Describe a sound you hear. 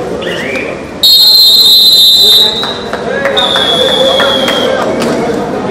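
A referee blows a whistle in long shrill blasts.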